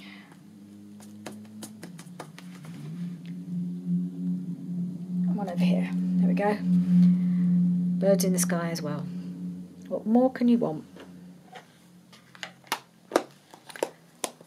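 A foam ink pad taps and dabs on paper.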